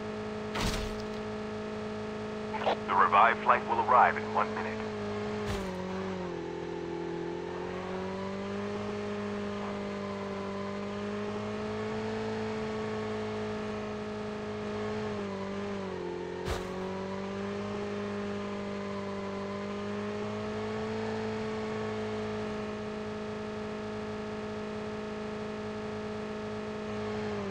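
A motorbike engine drones steadily, its pitch dipping and rising as it rides.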